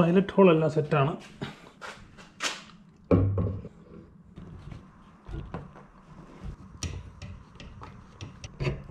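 Metal brackets clank and click as they are handled and fitted.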